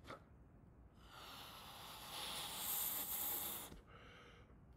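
A young man blows air into a balloon with a rushing hiss.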